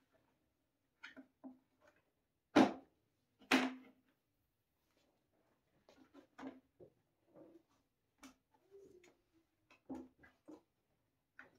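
Plastic and metal parts of a folding workbench clack and knock.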